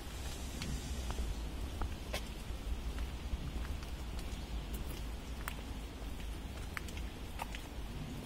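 Water flows gently in a canal.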